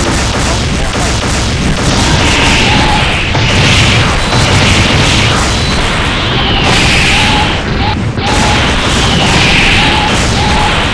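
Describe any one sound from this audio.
Rapid punches and energy blasts hit again and again in a fighting game.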